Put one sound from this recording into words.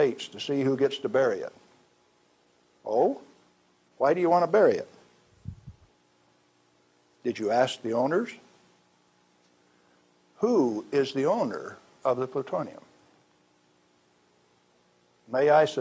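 A middle-aged man speaks slowly and deliberately, close to a microphone, with long pauses.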